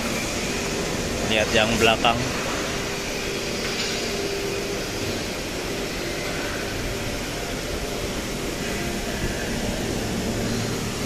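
A truck engine idles with a steady low hum.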